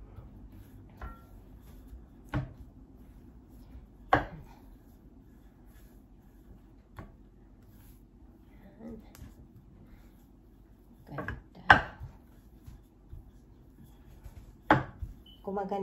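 A wooden rolling pin knocks on a board.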